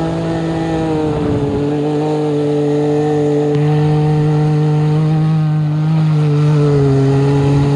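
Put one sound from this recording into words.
A turbocharged three-cylinder side-by-side UTV engine roars at high revs.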